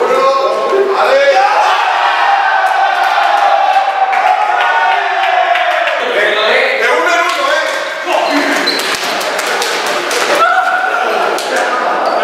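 A group of young men chant and sing together.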